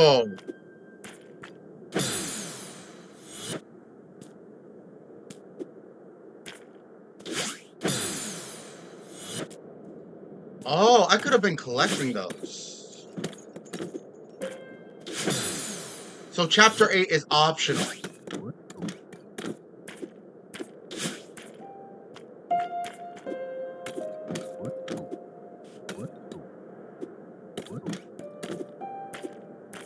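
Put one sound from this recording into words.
Video game sound effects whoosh and blip.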